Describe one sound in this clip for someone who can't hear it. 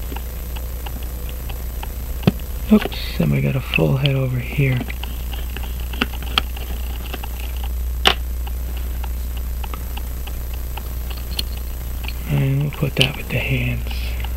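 A watch ticks rapidly and steadily, up close.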